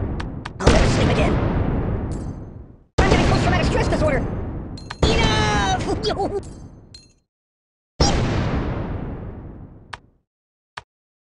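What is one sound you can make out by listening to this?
Loud explosions boom and rumble away, one after another.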